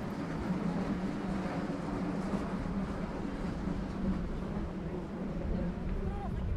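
Adults murmur in conversation nearby.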